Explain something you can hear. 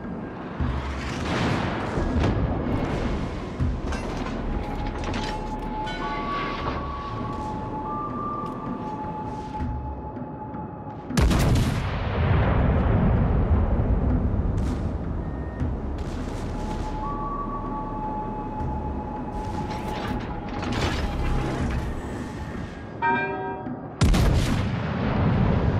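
Heavy naval guns fire in deep booming blasts.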